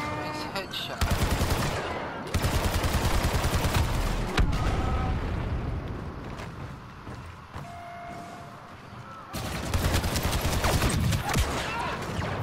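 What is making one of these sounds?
Blaster rifles fire in rapid bursts of sharp zapping shots.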